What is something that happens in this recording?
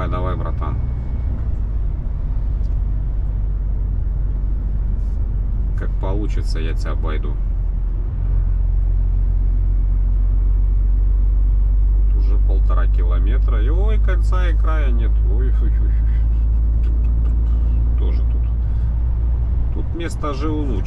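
A vehicle engine rumbles low and steady, heard from inside the cab.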